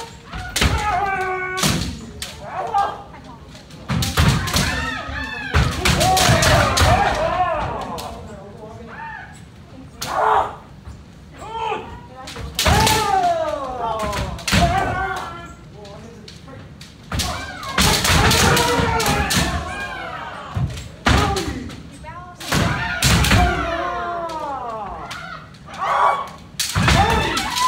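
Bamboo swords clack and strike against each other.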